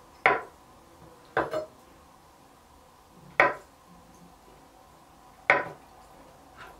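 A knife chops down sharply on a wooden cutting board.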